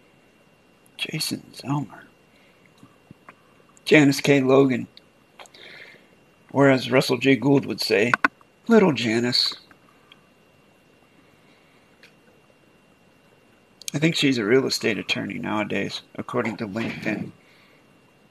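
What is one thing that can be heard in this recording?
A man speaks calmly into a close microphone, in bursts with pauses.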